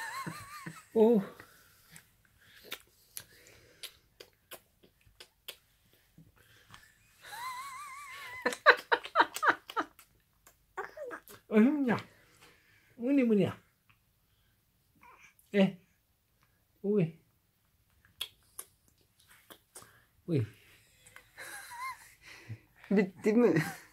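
A man talks softly and playfully up close to a baby.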